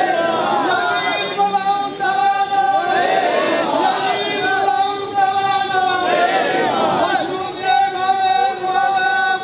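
A crowd of men chants loudly in unison outdoors.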